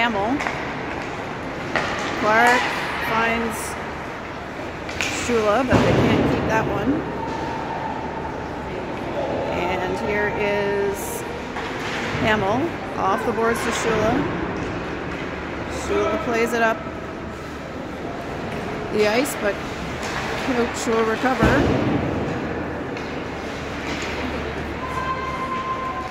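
Hockey sticks clack against the puck.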